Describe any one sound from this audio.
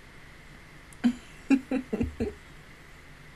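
A young woman laughs briefly, close to a microphone.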